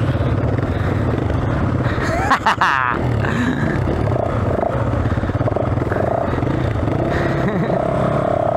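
A dirt bike engine idles and rumbles close by.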